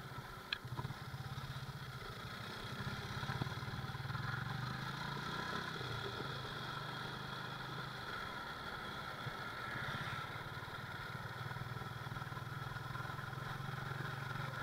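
A motorcycle engine putters steadily up close.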